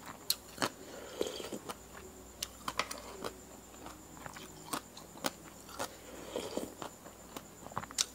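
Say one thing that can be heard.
A woman slurps from a spoon.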